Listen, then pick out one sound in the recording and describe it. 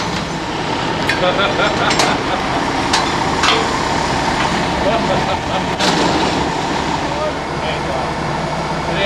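Men talk outdoors.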